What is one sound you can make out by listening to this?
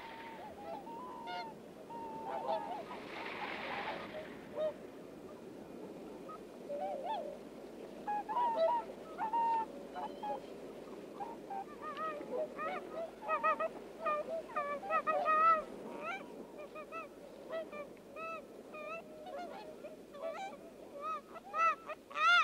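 Swans call with honking, bugling notes.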